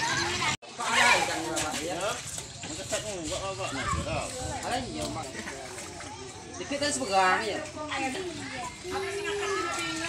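Shallow water splashes as a man wades through it.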